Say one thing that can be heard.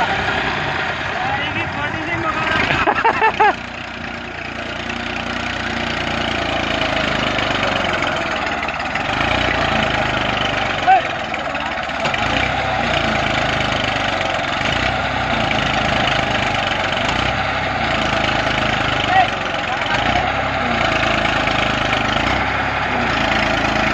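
A tractor engine runs steadily nearby.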